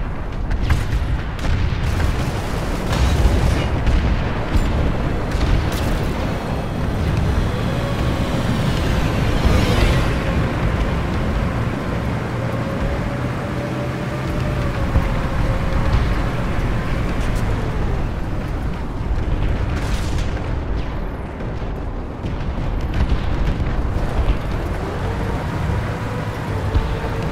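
A heavy armoured vehicle's engine rumbles steadily as it drives.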